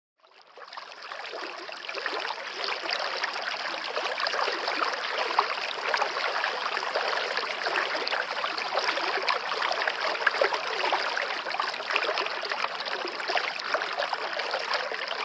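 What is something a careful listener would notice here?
A stream splashes and gurgles steadily over rocks.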